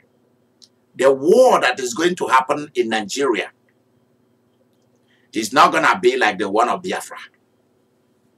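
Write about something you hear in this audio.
A man speaks calmly and clearly into a nearby microphone, in two short phrases.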